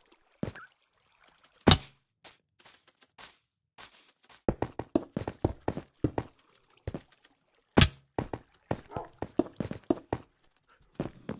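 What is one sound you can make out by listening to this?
Blocks thud and click as they are placed one after another.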